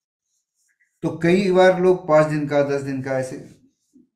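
An elderly man chants calmly in a steady voice, close to a microphone.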